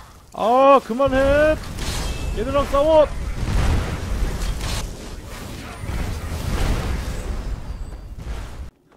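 Magic spells roar and crackle in a rushing blast.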